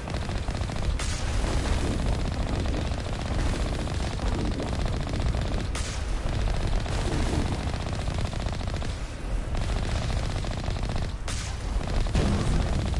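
Energy weapons fire in bursts.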